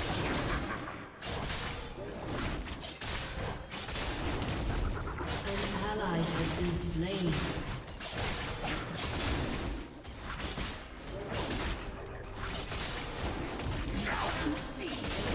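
Swords slash and magic blasts crash in a video game battle.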